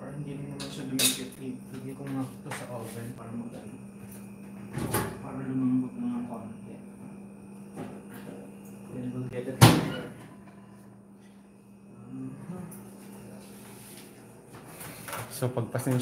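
Dishes and pots clatter and knock.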